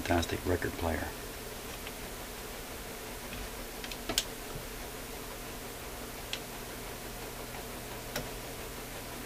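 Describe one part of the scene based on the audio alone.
A phonograph tone arm clicks and knocks as it is handled.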